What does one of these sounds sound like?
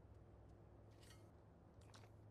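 A man bites into food and chews.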